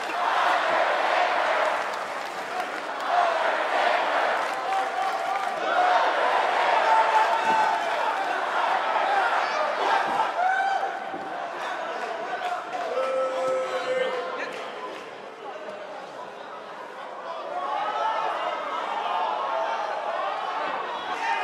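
A large crowd cheers and chants loudly in a big echoing hall.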